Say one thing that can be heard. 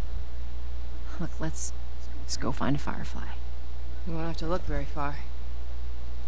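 A woman speaks calmly and quietly.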